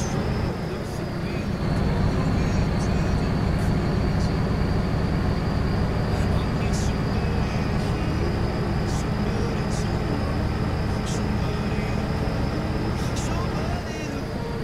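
A truck engine hums with a low, steady drone.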